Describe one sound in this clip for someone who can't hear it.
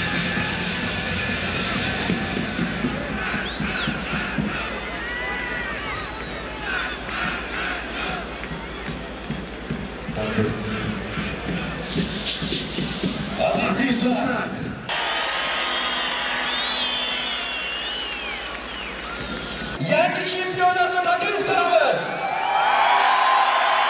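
A large crowd cheers loudly in an open stadium.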